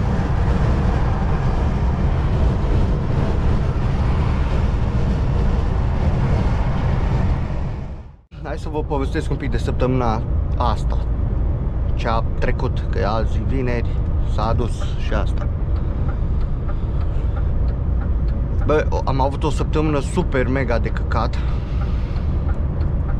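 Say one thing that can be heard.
A truck rumbles steadily along a motorway.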